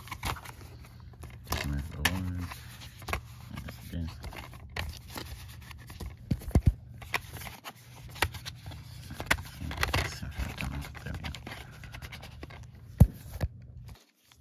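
Plastic clicks and taps as a disc is handled in its case.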